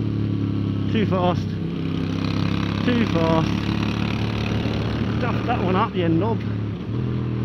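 A motorcycle engine crackles and pops as it slows for a bend.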